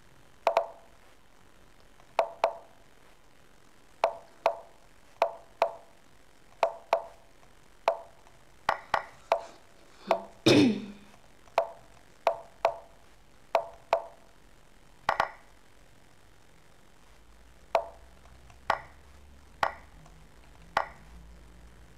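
Chess pieces click sharply as moves are played, in quick pairs.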